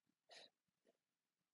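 A young woman breathes out sharply close by.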